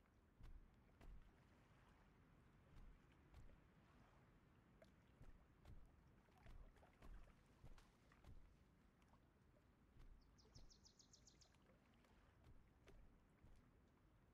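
Heavy footsteps of a large creature thud slowly and steadily.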